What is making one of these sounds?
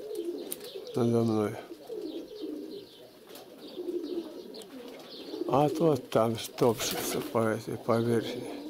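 A dove coos nearby in short, repeated calls.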